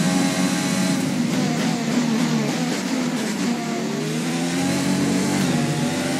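A racing car engine drops in pitch as the car brakes hard, then revs up again.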